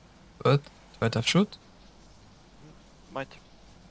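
A game menu clicks open.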